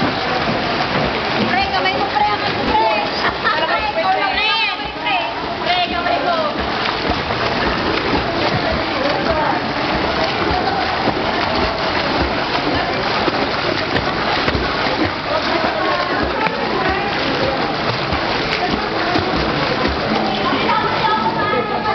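Swimmers splash steadily through water.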